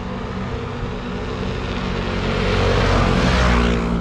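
A motorcycle approaches with a growing engine roar.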